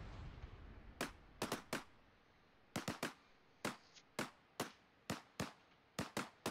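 A fire crackles with sharp, scattered pops.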